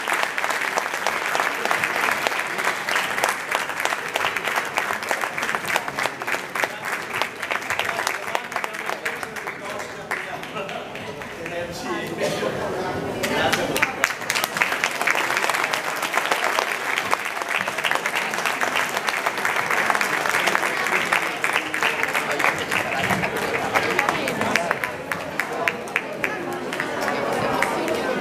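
An audience claps and applauds loudly.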